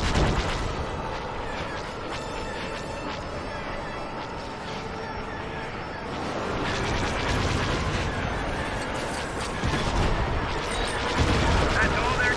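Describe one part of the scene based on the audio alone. A starfighter's engines roar steadily.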